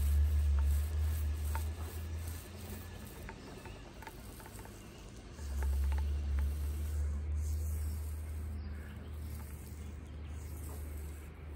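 A paint roller rolls softly over a smooth surface.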